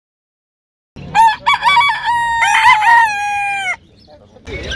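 Roosters crow loudly close by.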